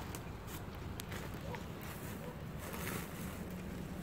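Boots crunch on dry leaves.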